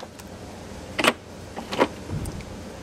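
Metal tool parts clink together.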